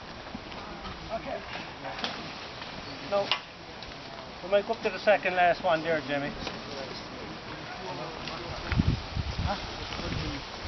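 Young men call out to each other outdoors.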